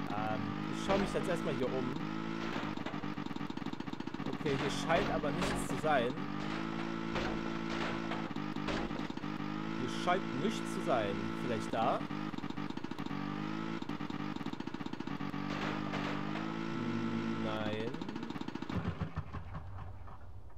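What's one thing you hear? A snowmobile engine drones steadily and revs up and down.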